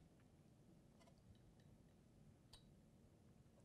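A small plastic tube clicks softly into a rotor slot.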